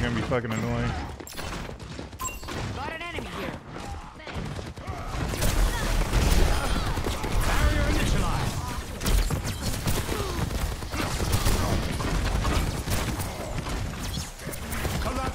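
Rapid gunshots and blasts crackle from a video game.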